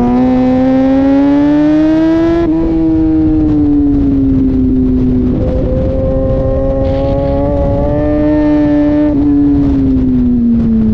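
Wind rushes hard past the rider.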